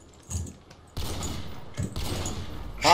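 A rifle fires a single loud shot that rings out.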